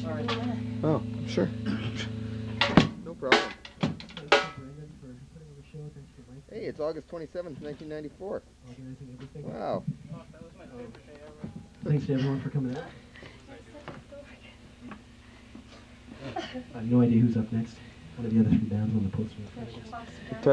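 A bass guitar plays low notes.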